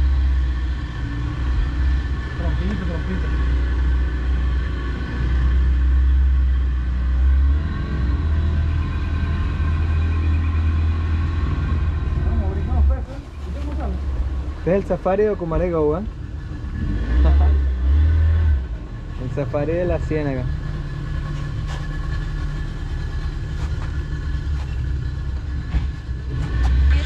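Water rushes past a moving boat's hull.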